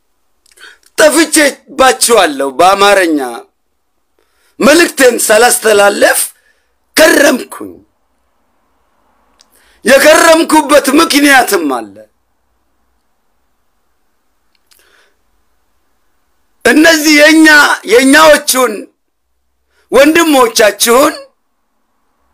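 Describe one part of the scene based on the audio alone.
A man speaks close to a microphone with animation, in short bursts with pauses.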